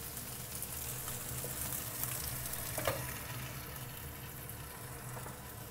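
Fish sizzles in a hot pan.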